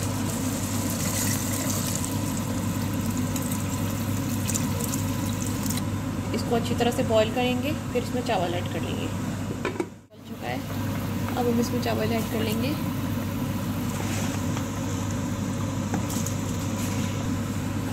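Sauce bubbles and simmers in a pan.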